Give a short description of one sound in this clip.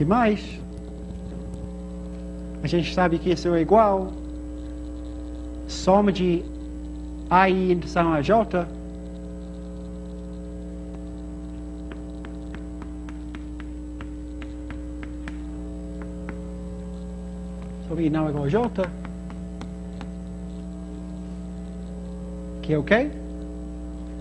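A man speaks in pauses, close by.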